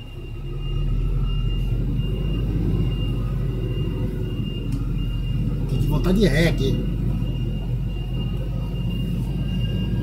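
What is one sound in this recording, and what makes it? A truck's diesel engine idles with a steady low rumble nearby.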